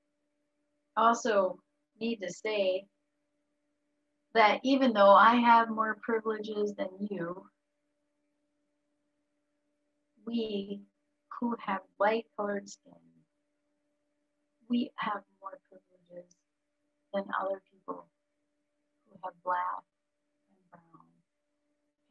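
A middle-aged woman speaks calmly in pauses over an online call.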